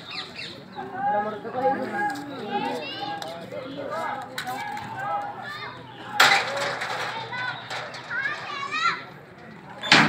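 A boy talks loudly and excitedly close by.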